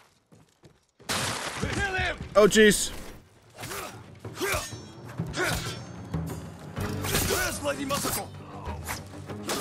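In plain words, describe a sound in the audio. Swords clash and strike during a fight.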